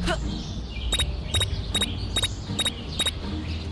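Quick footsteps tap on grass.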